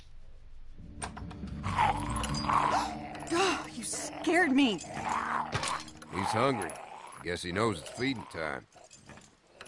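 A creature growls and snarls loudly.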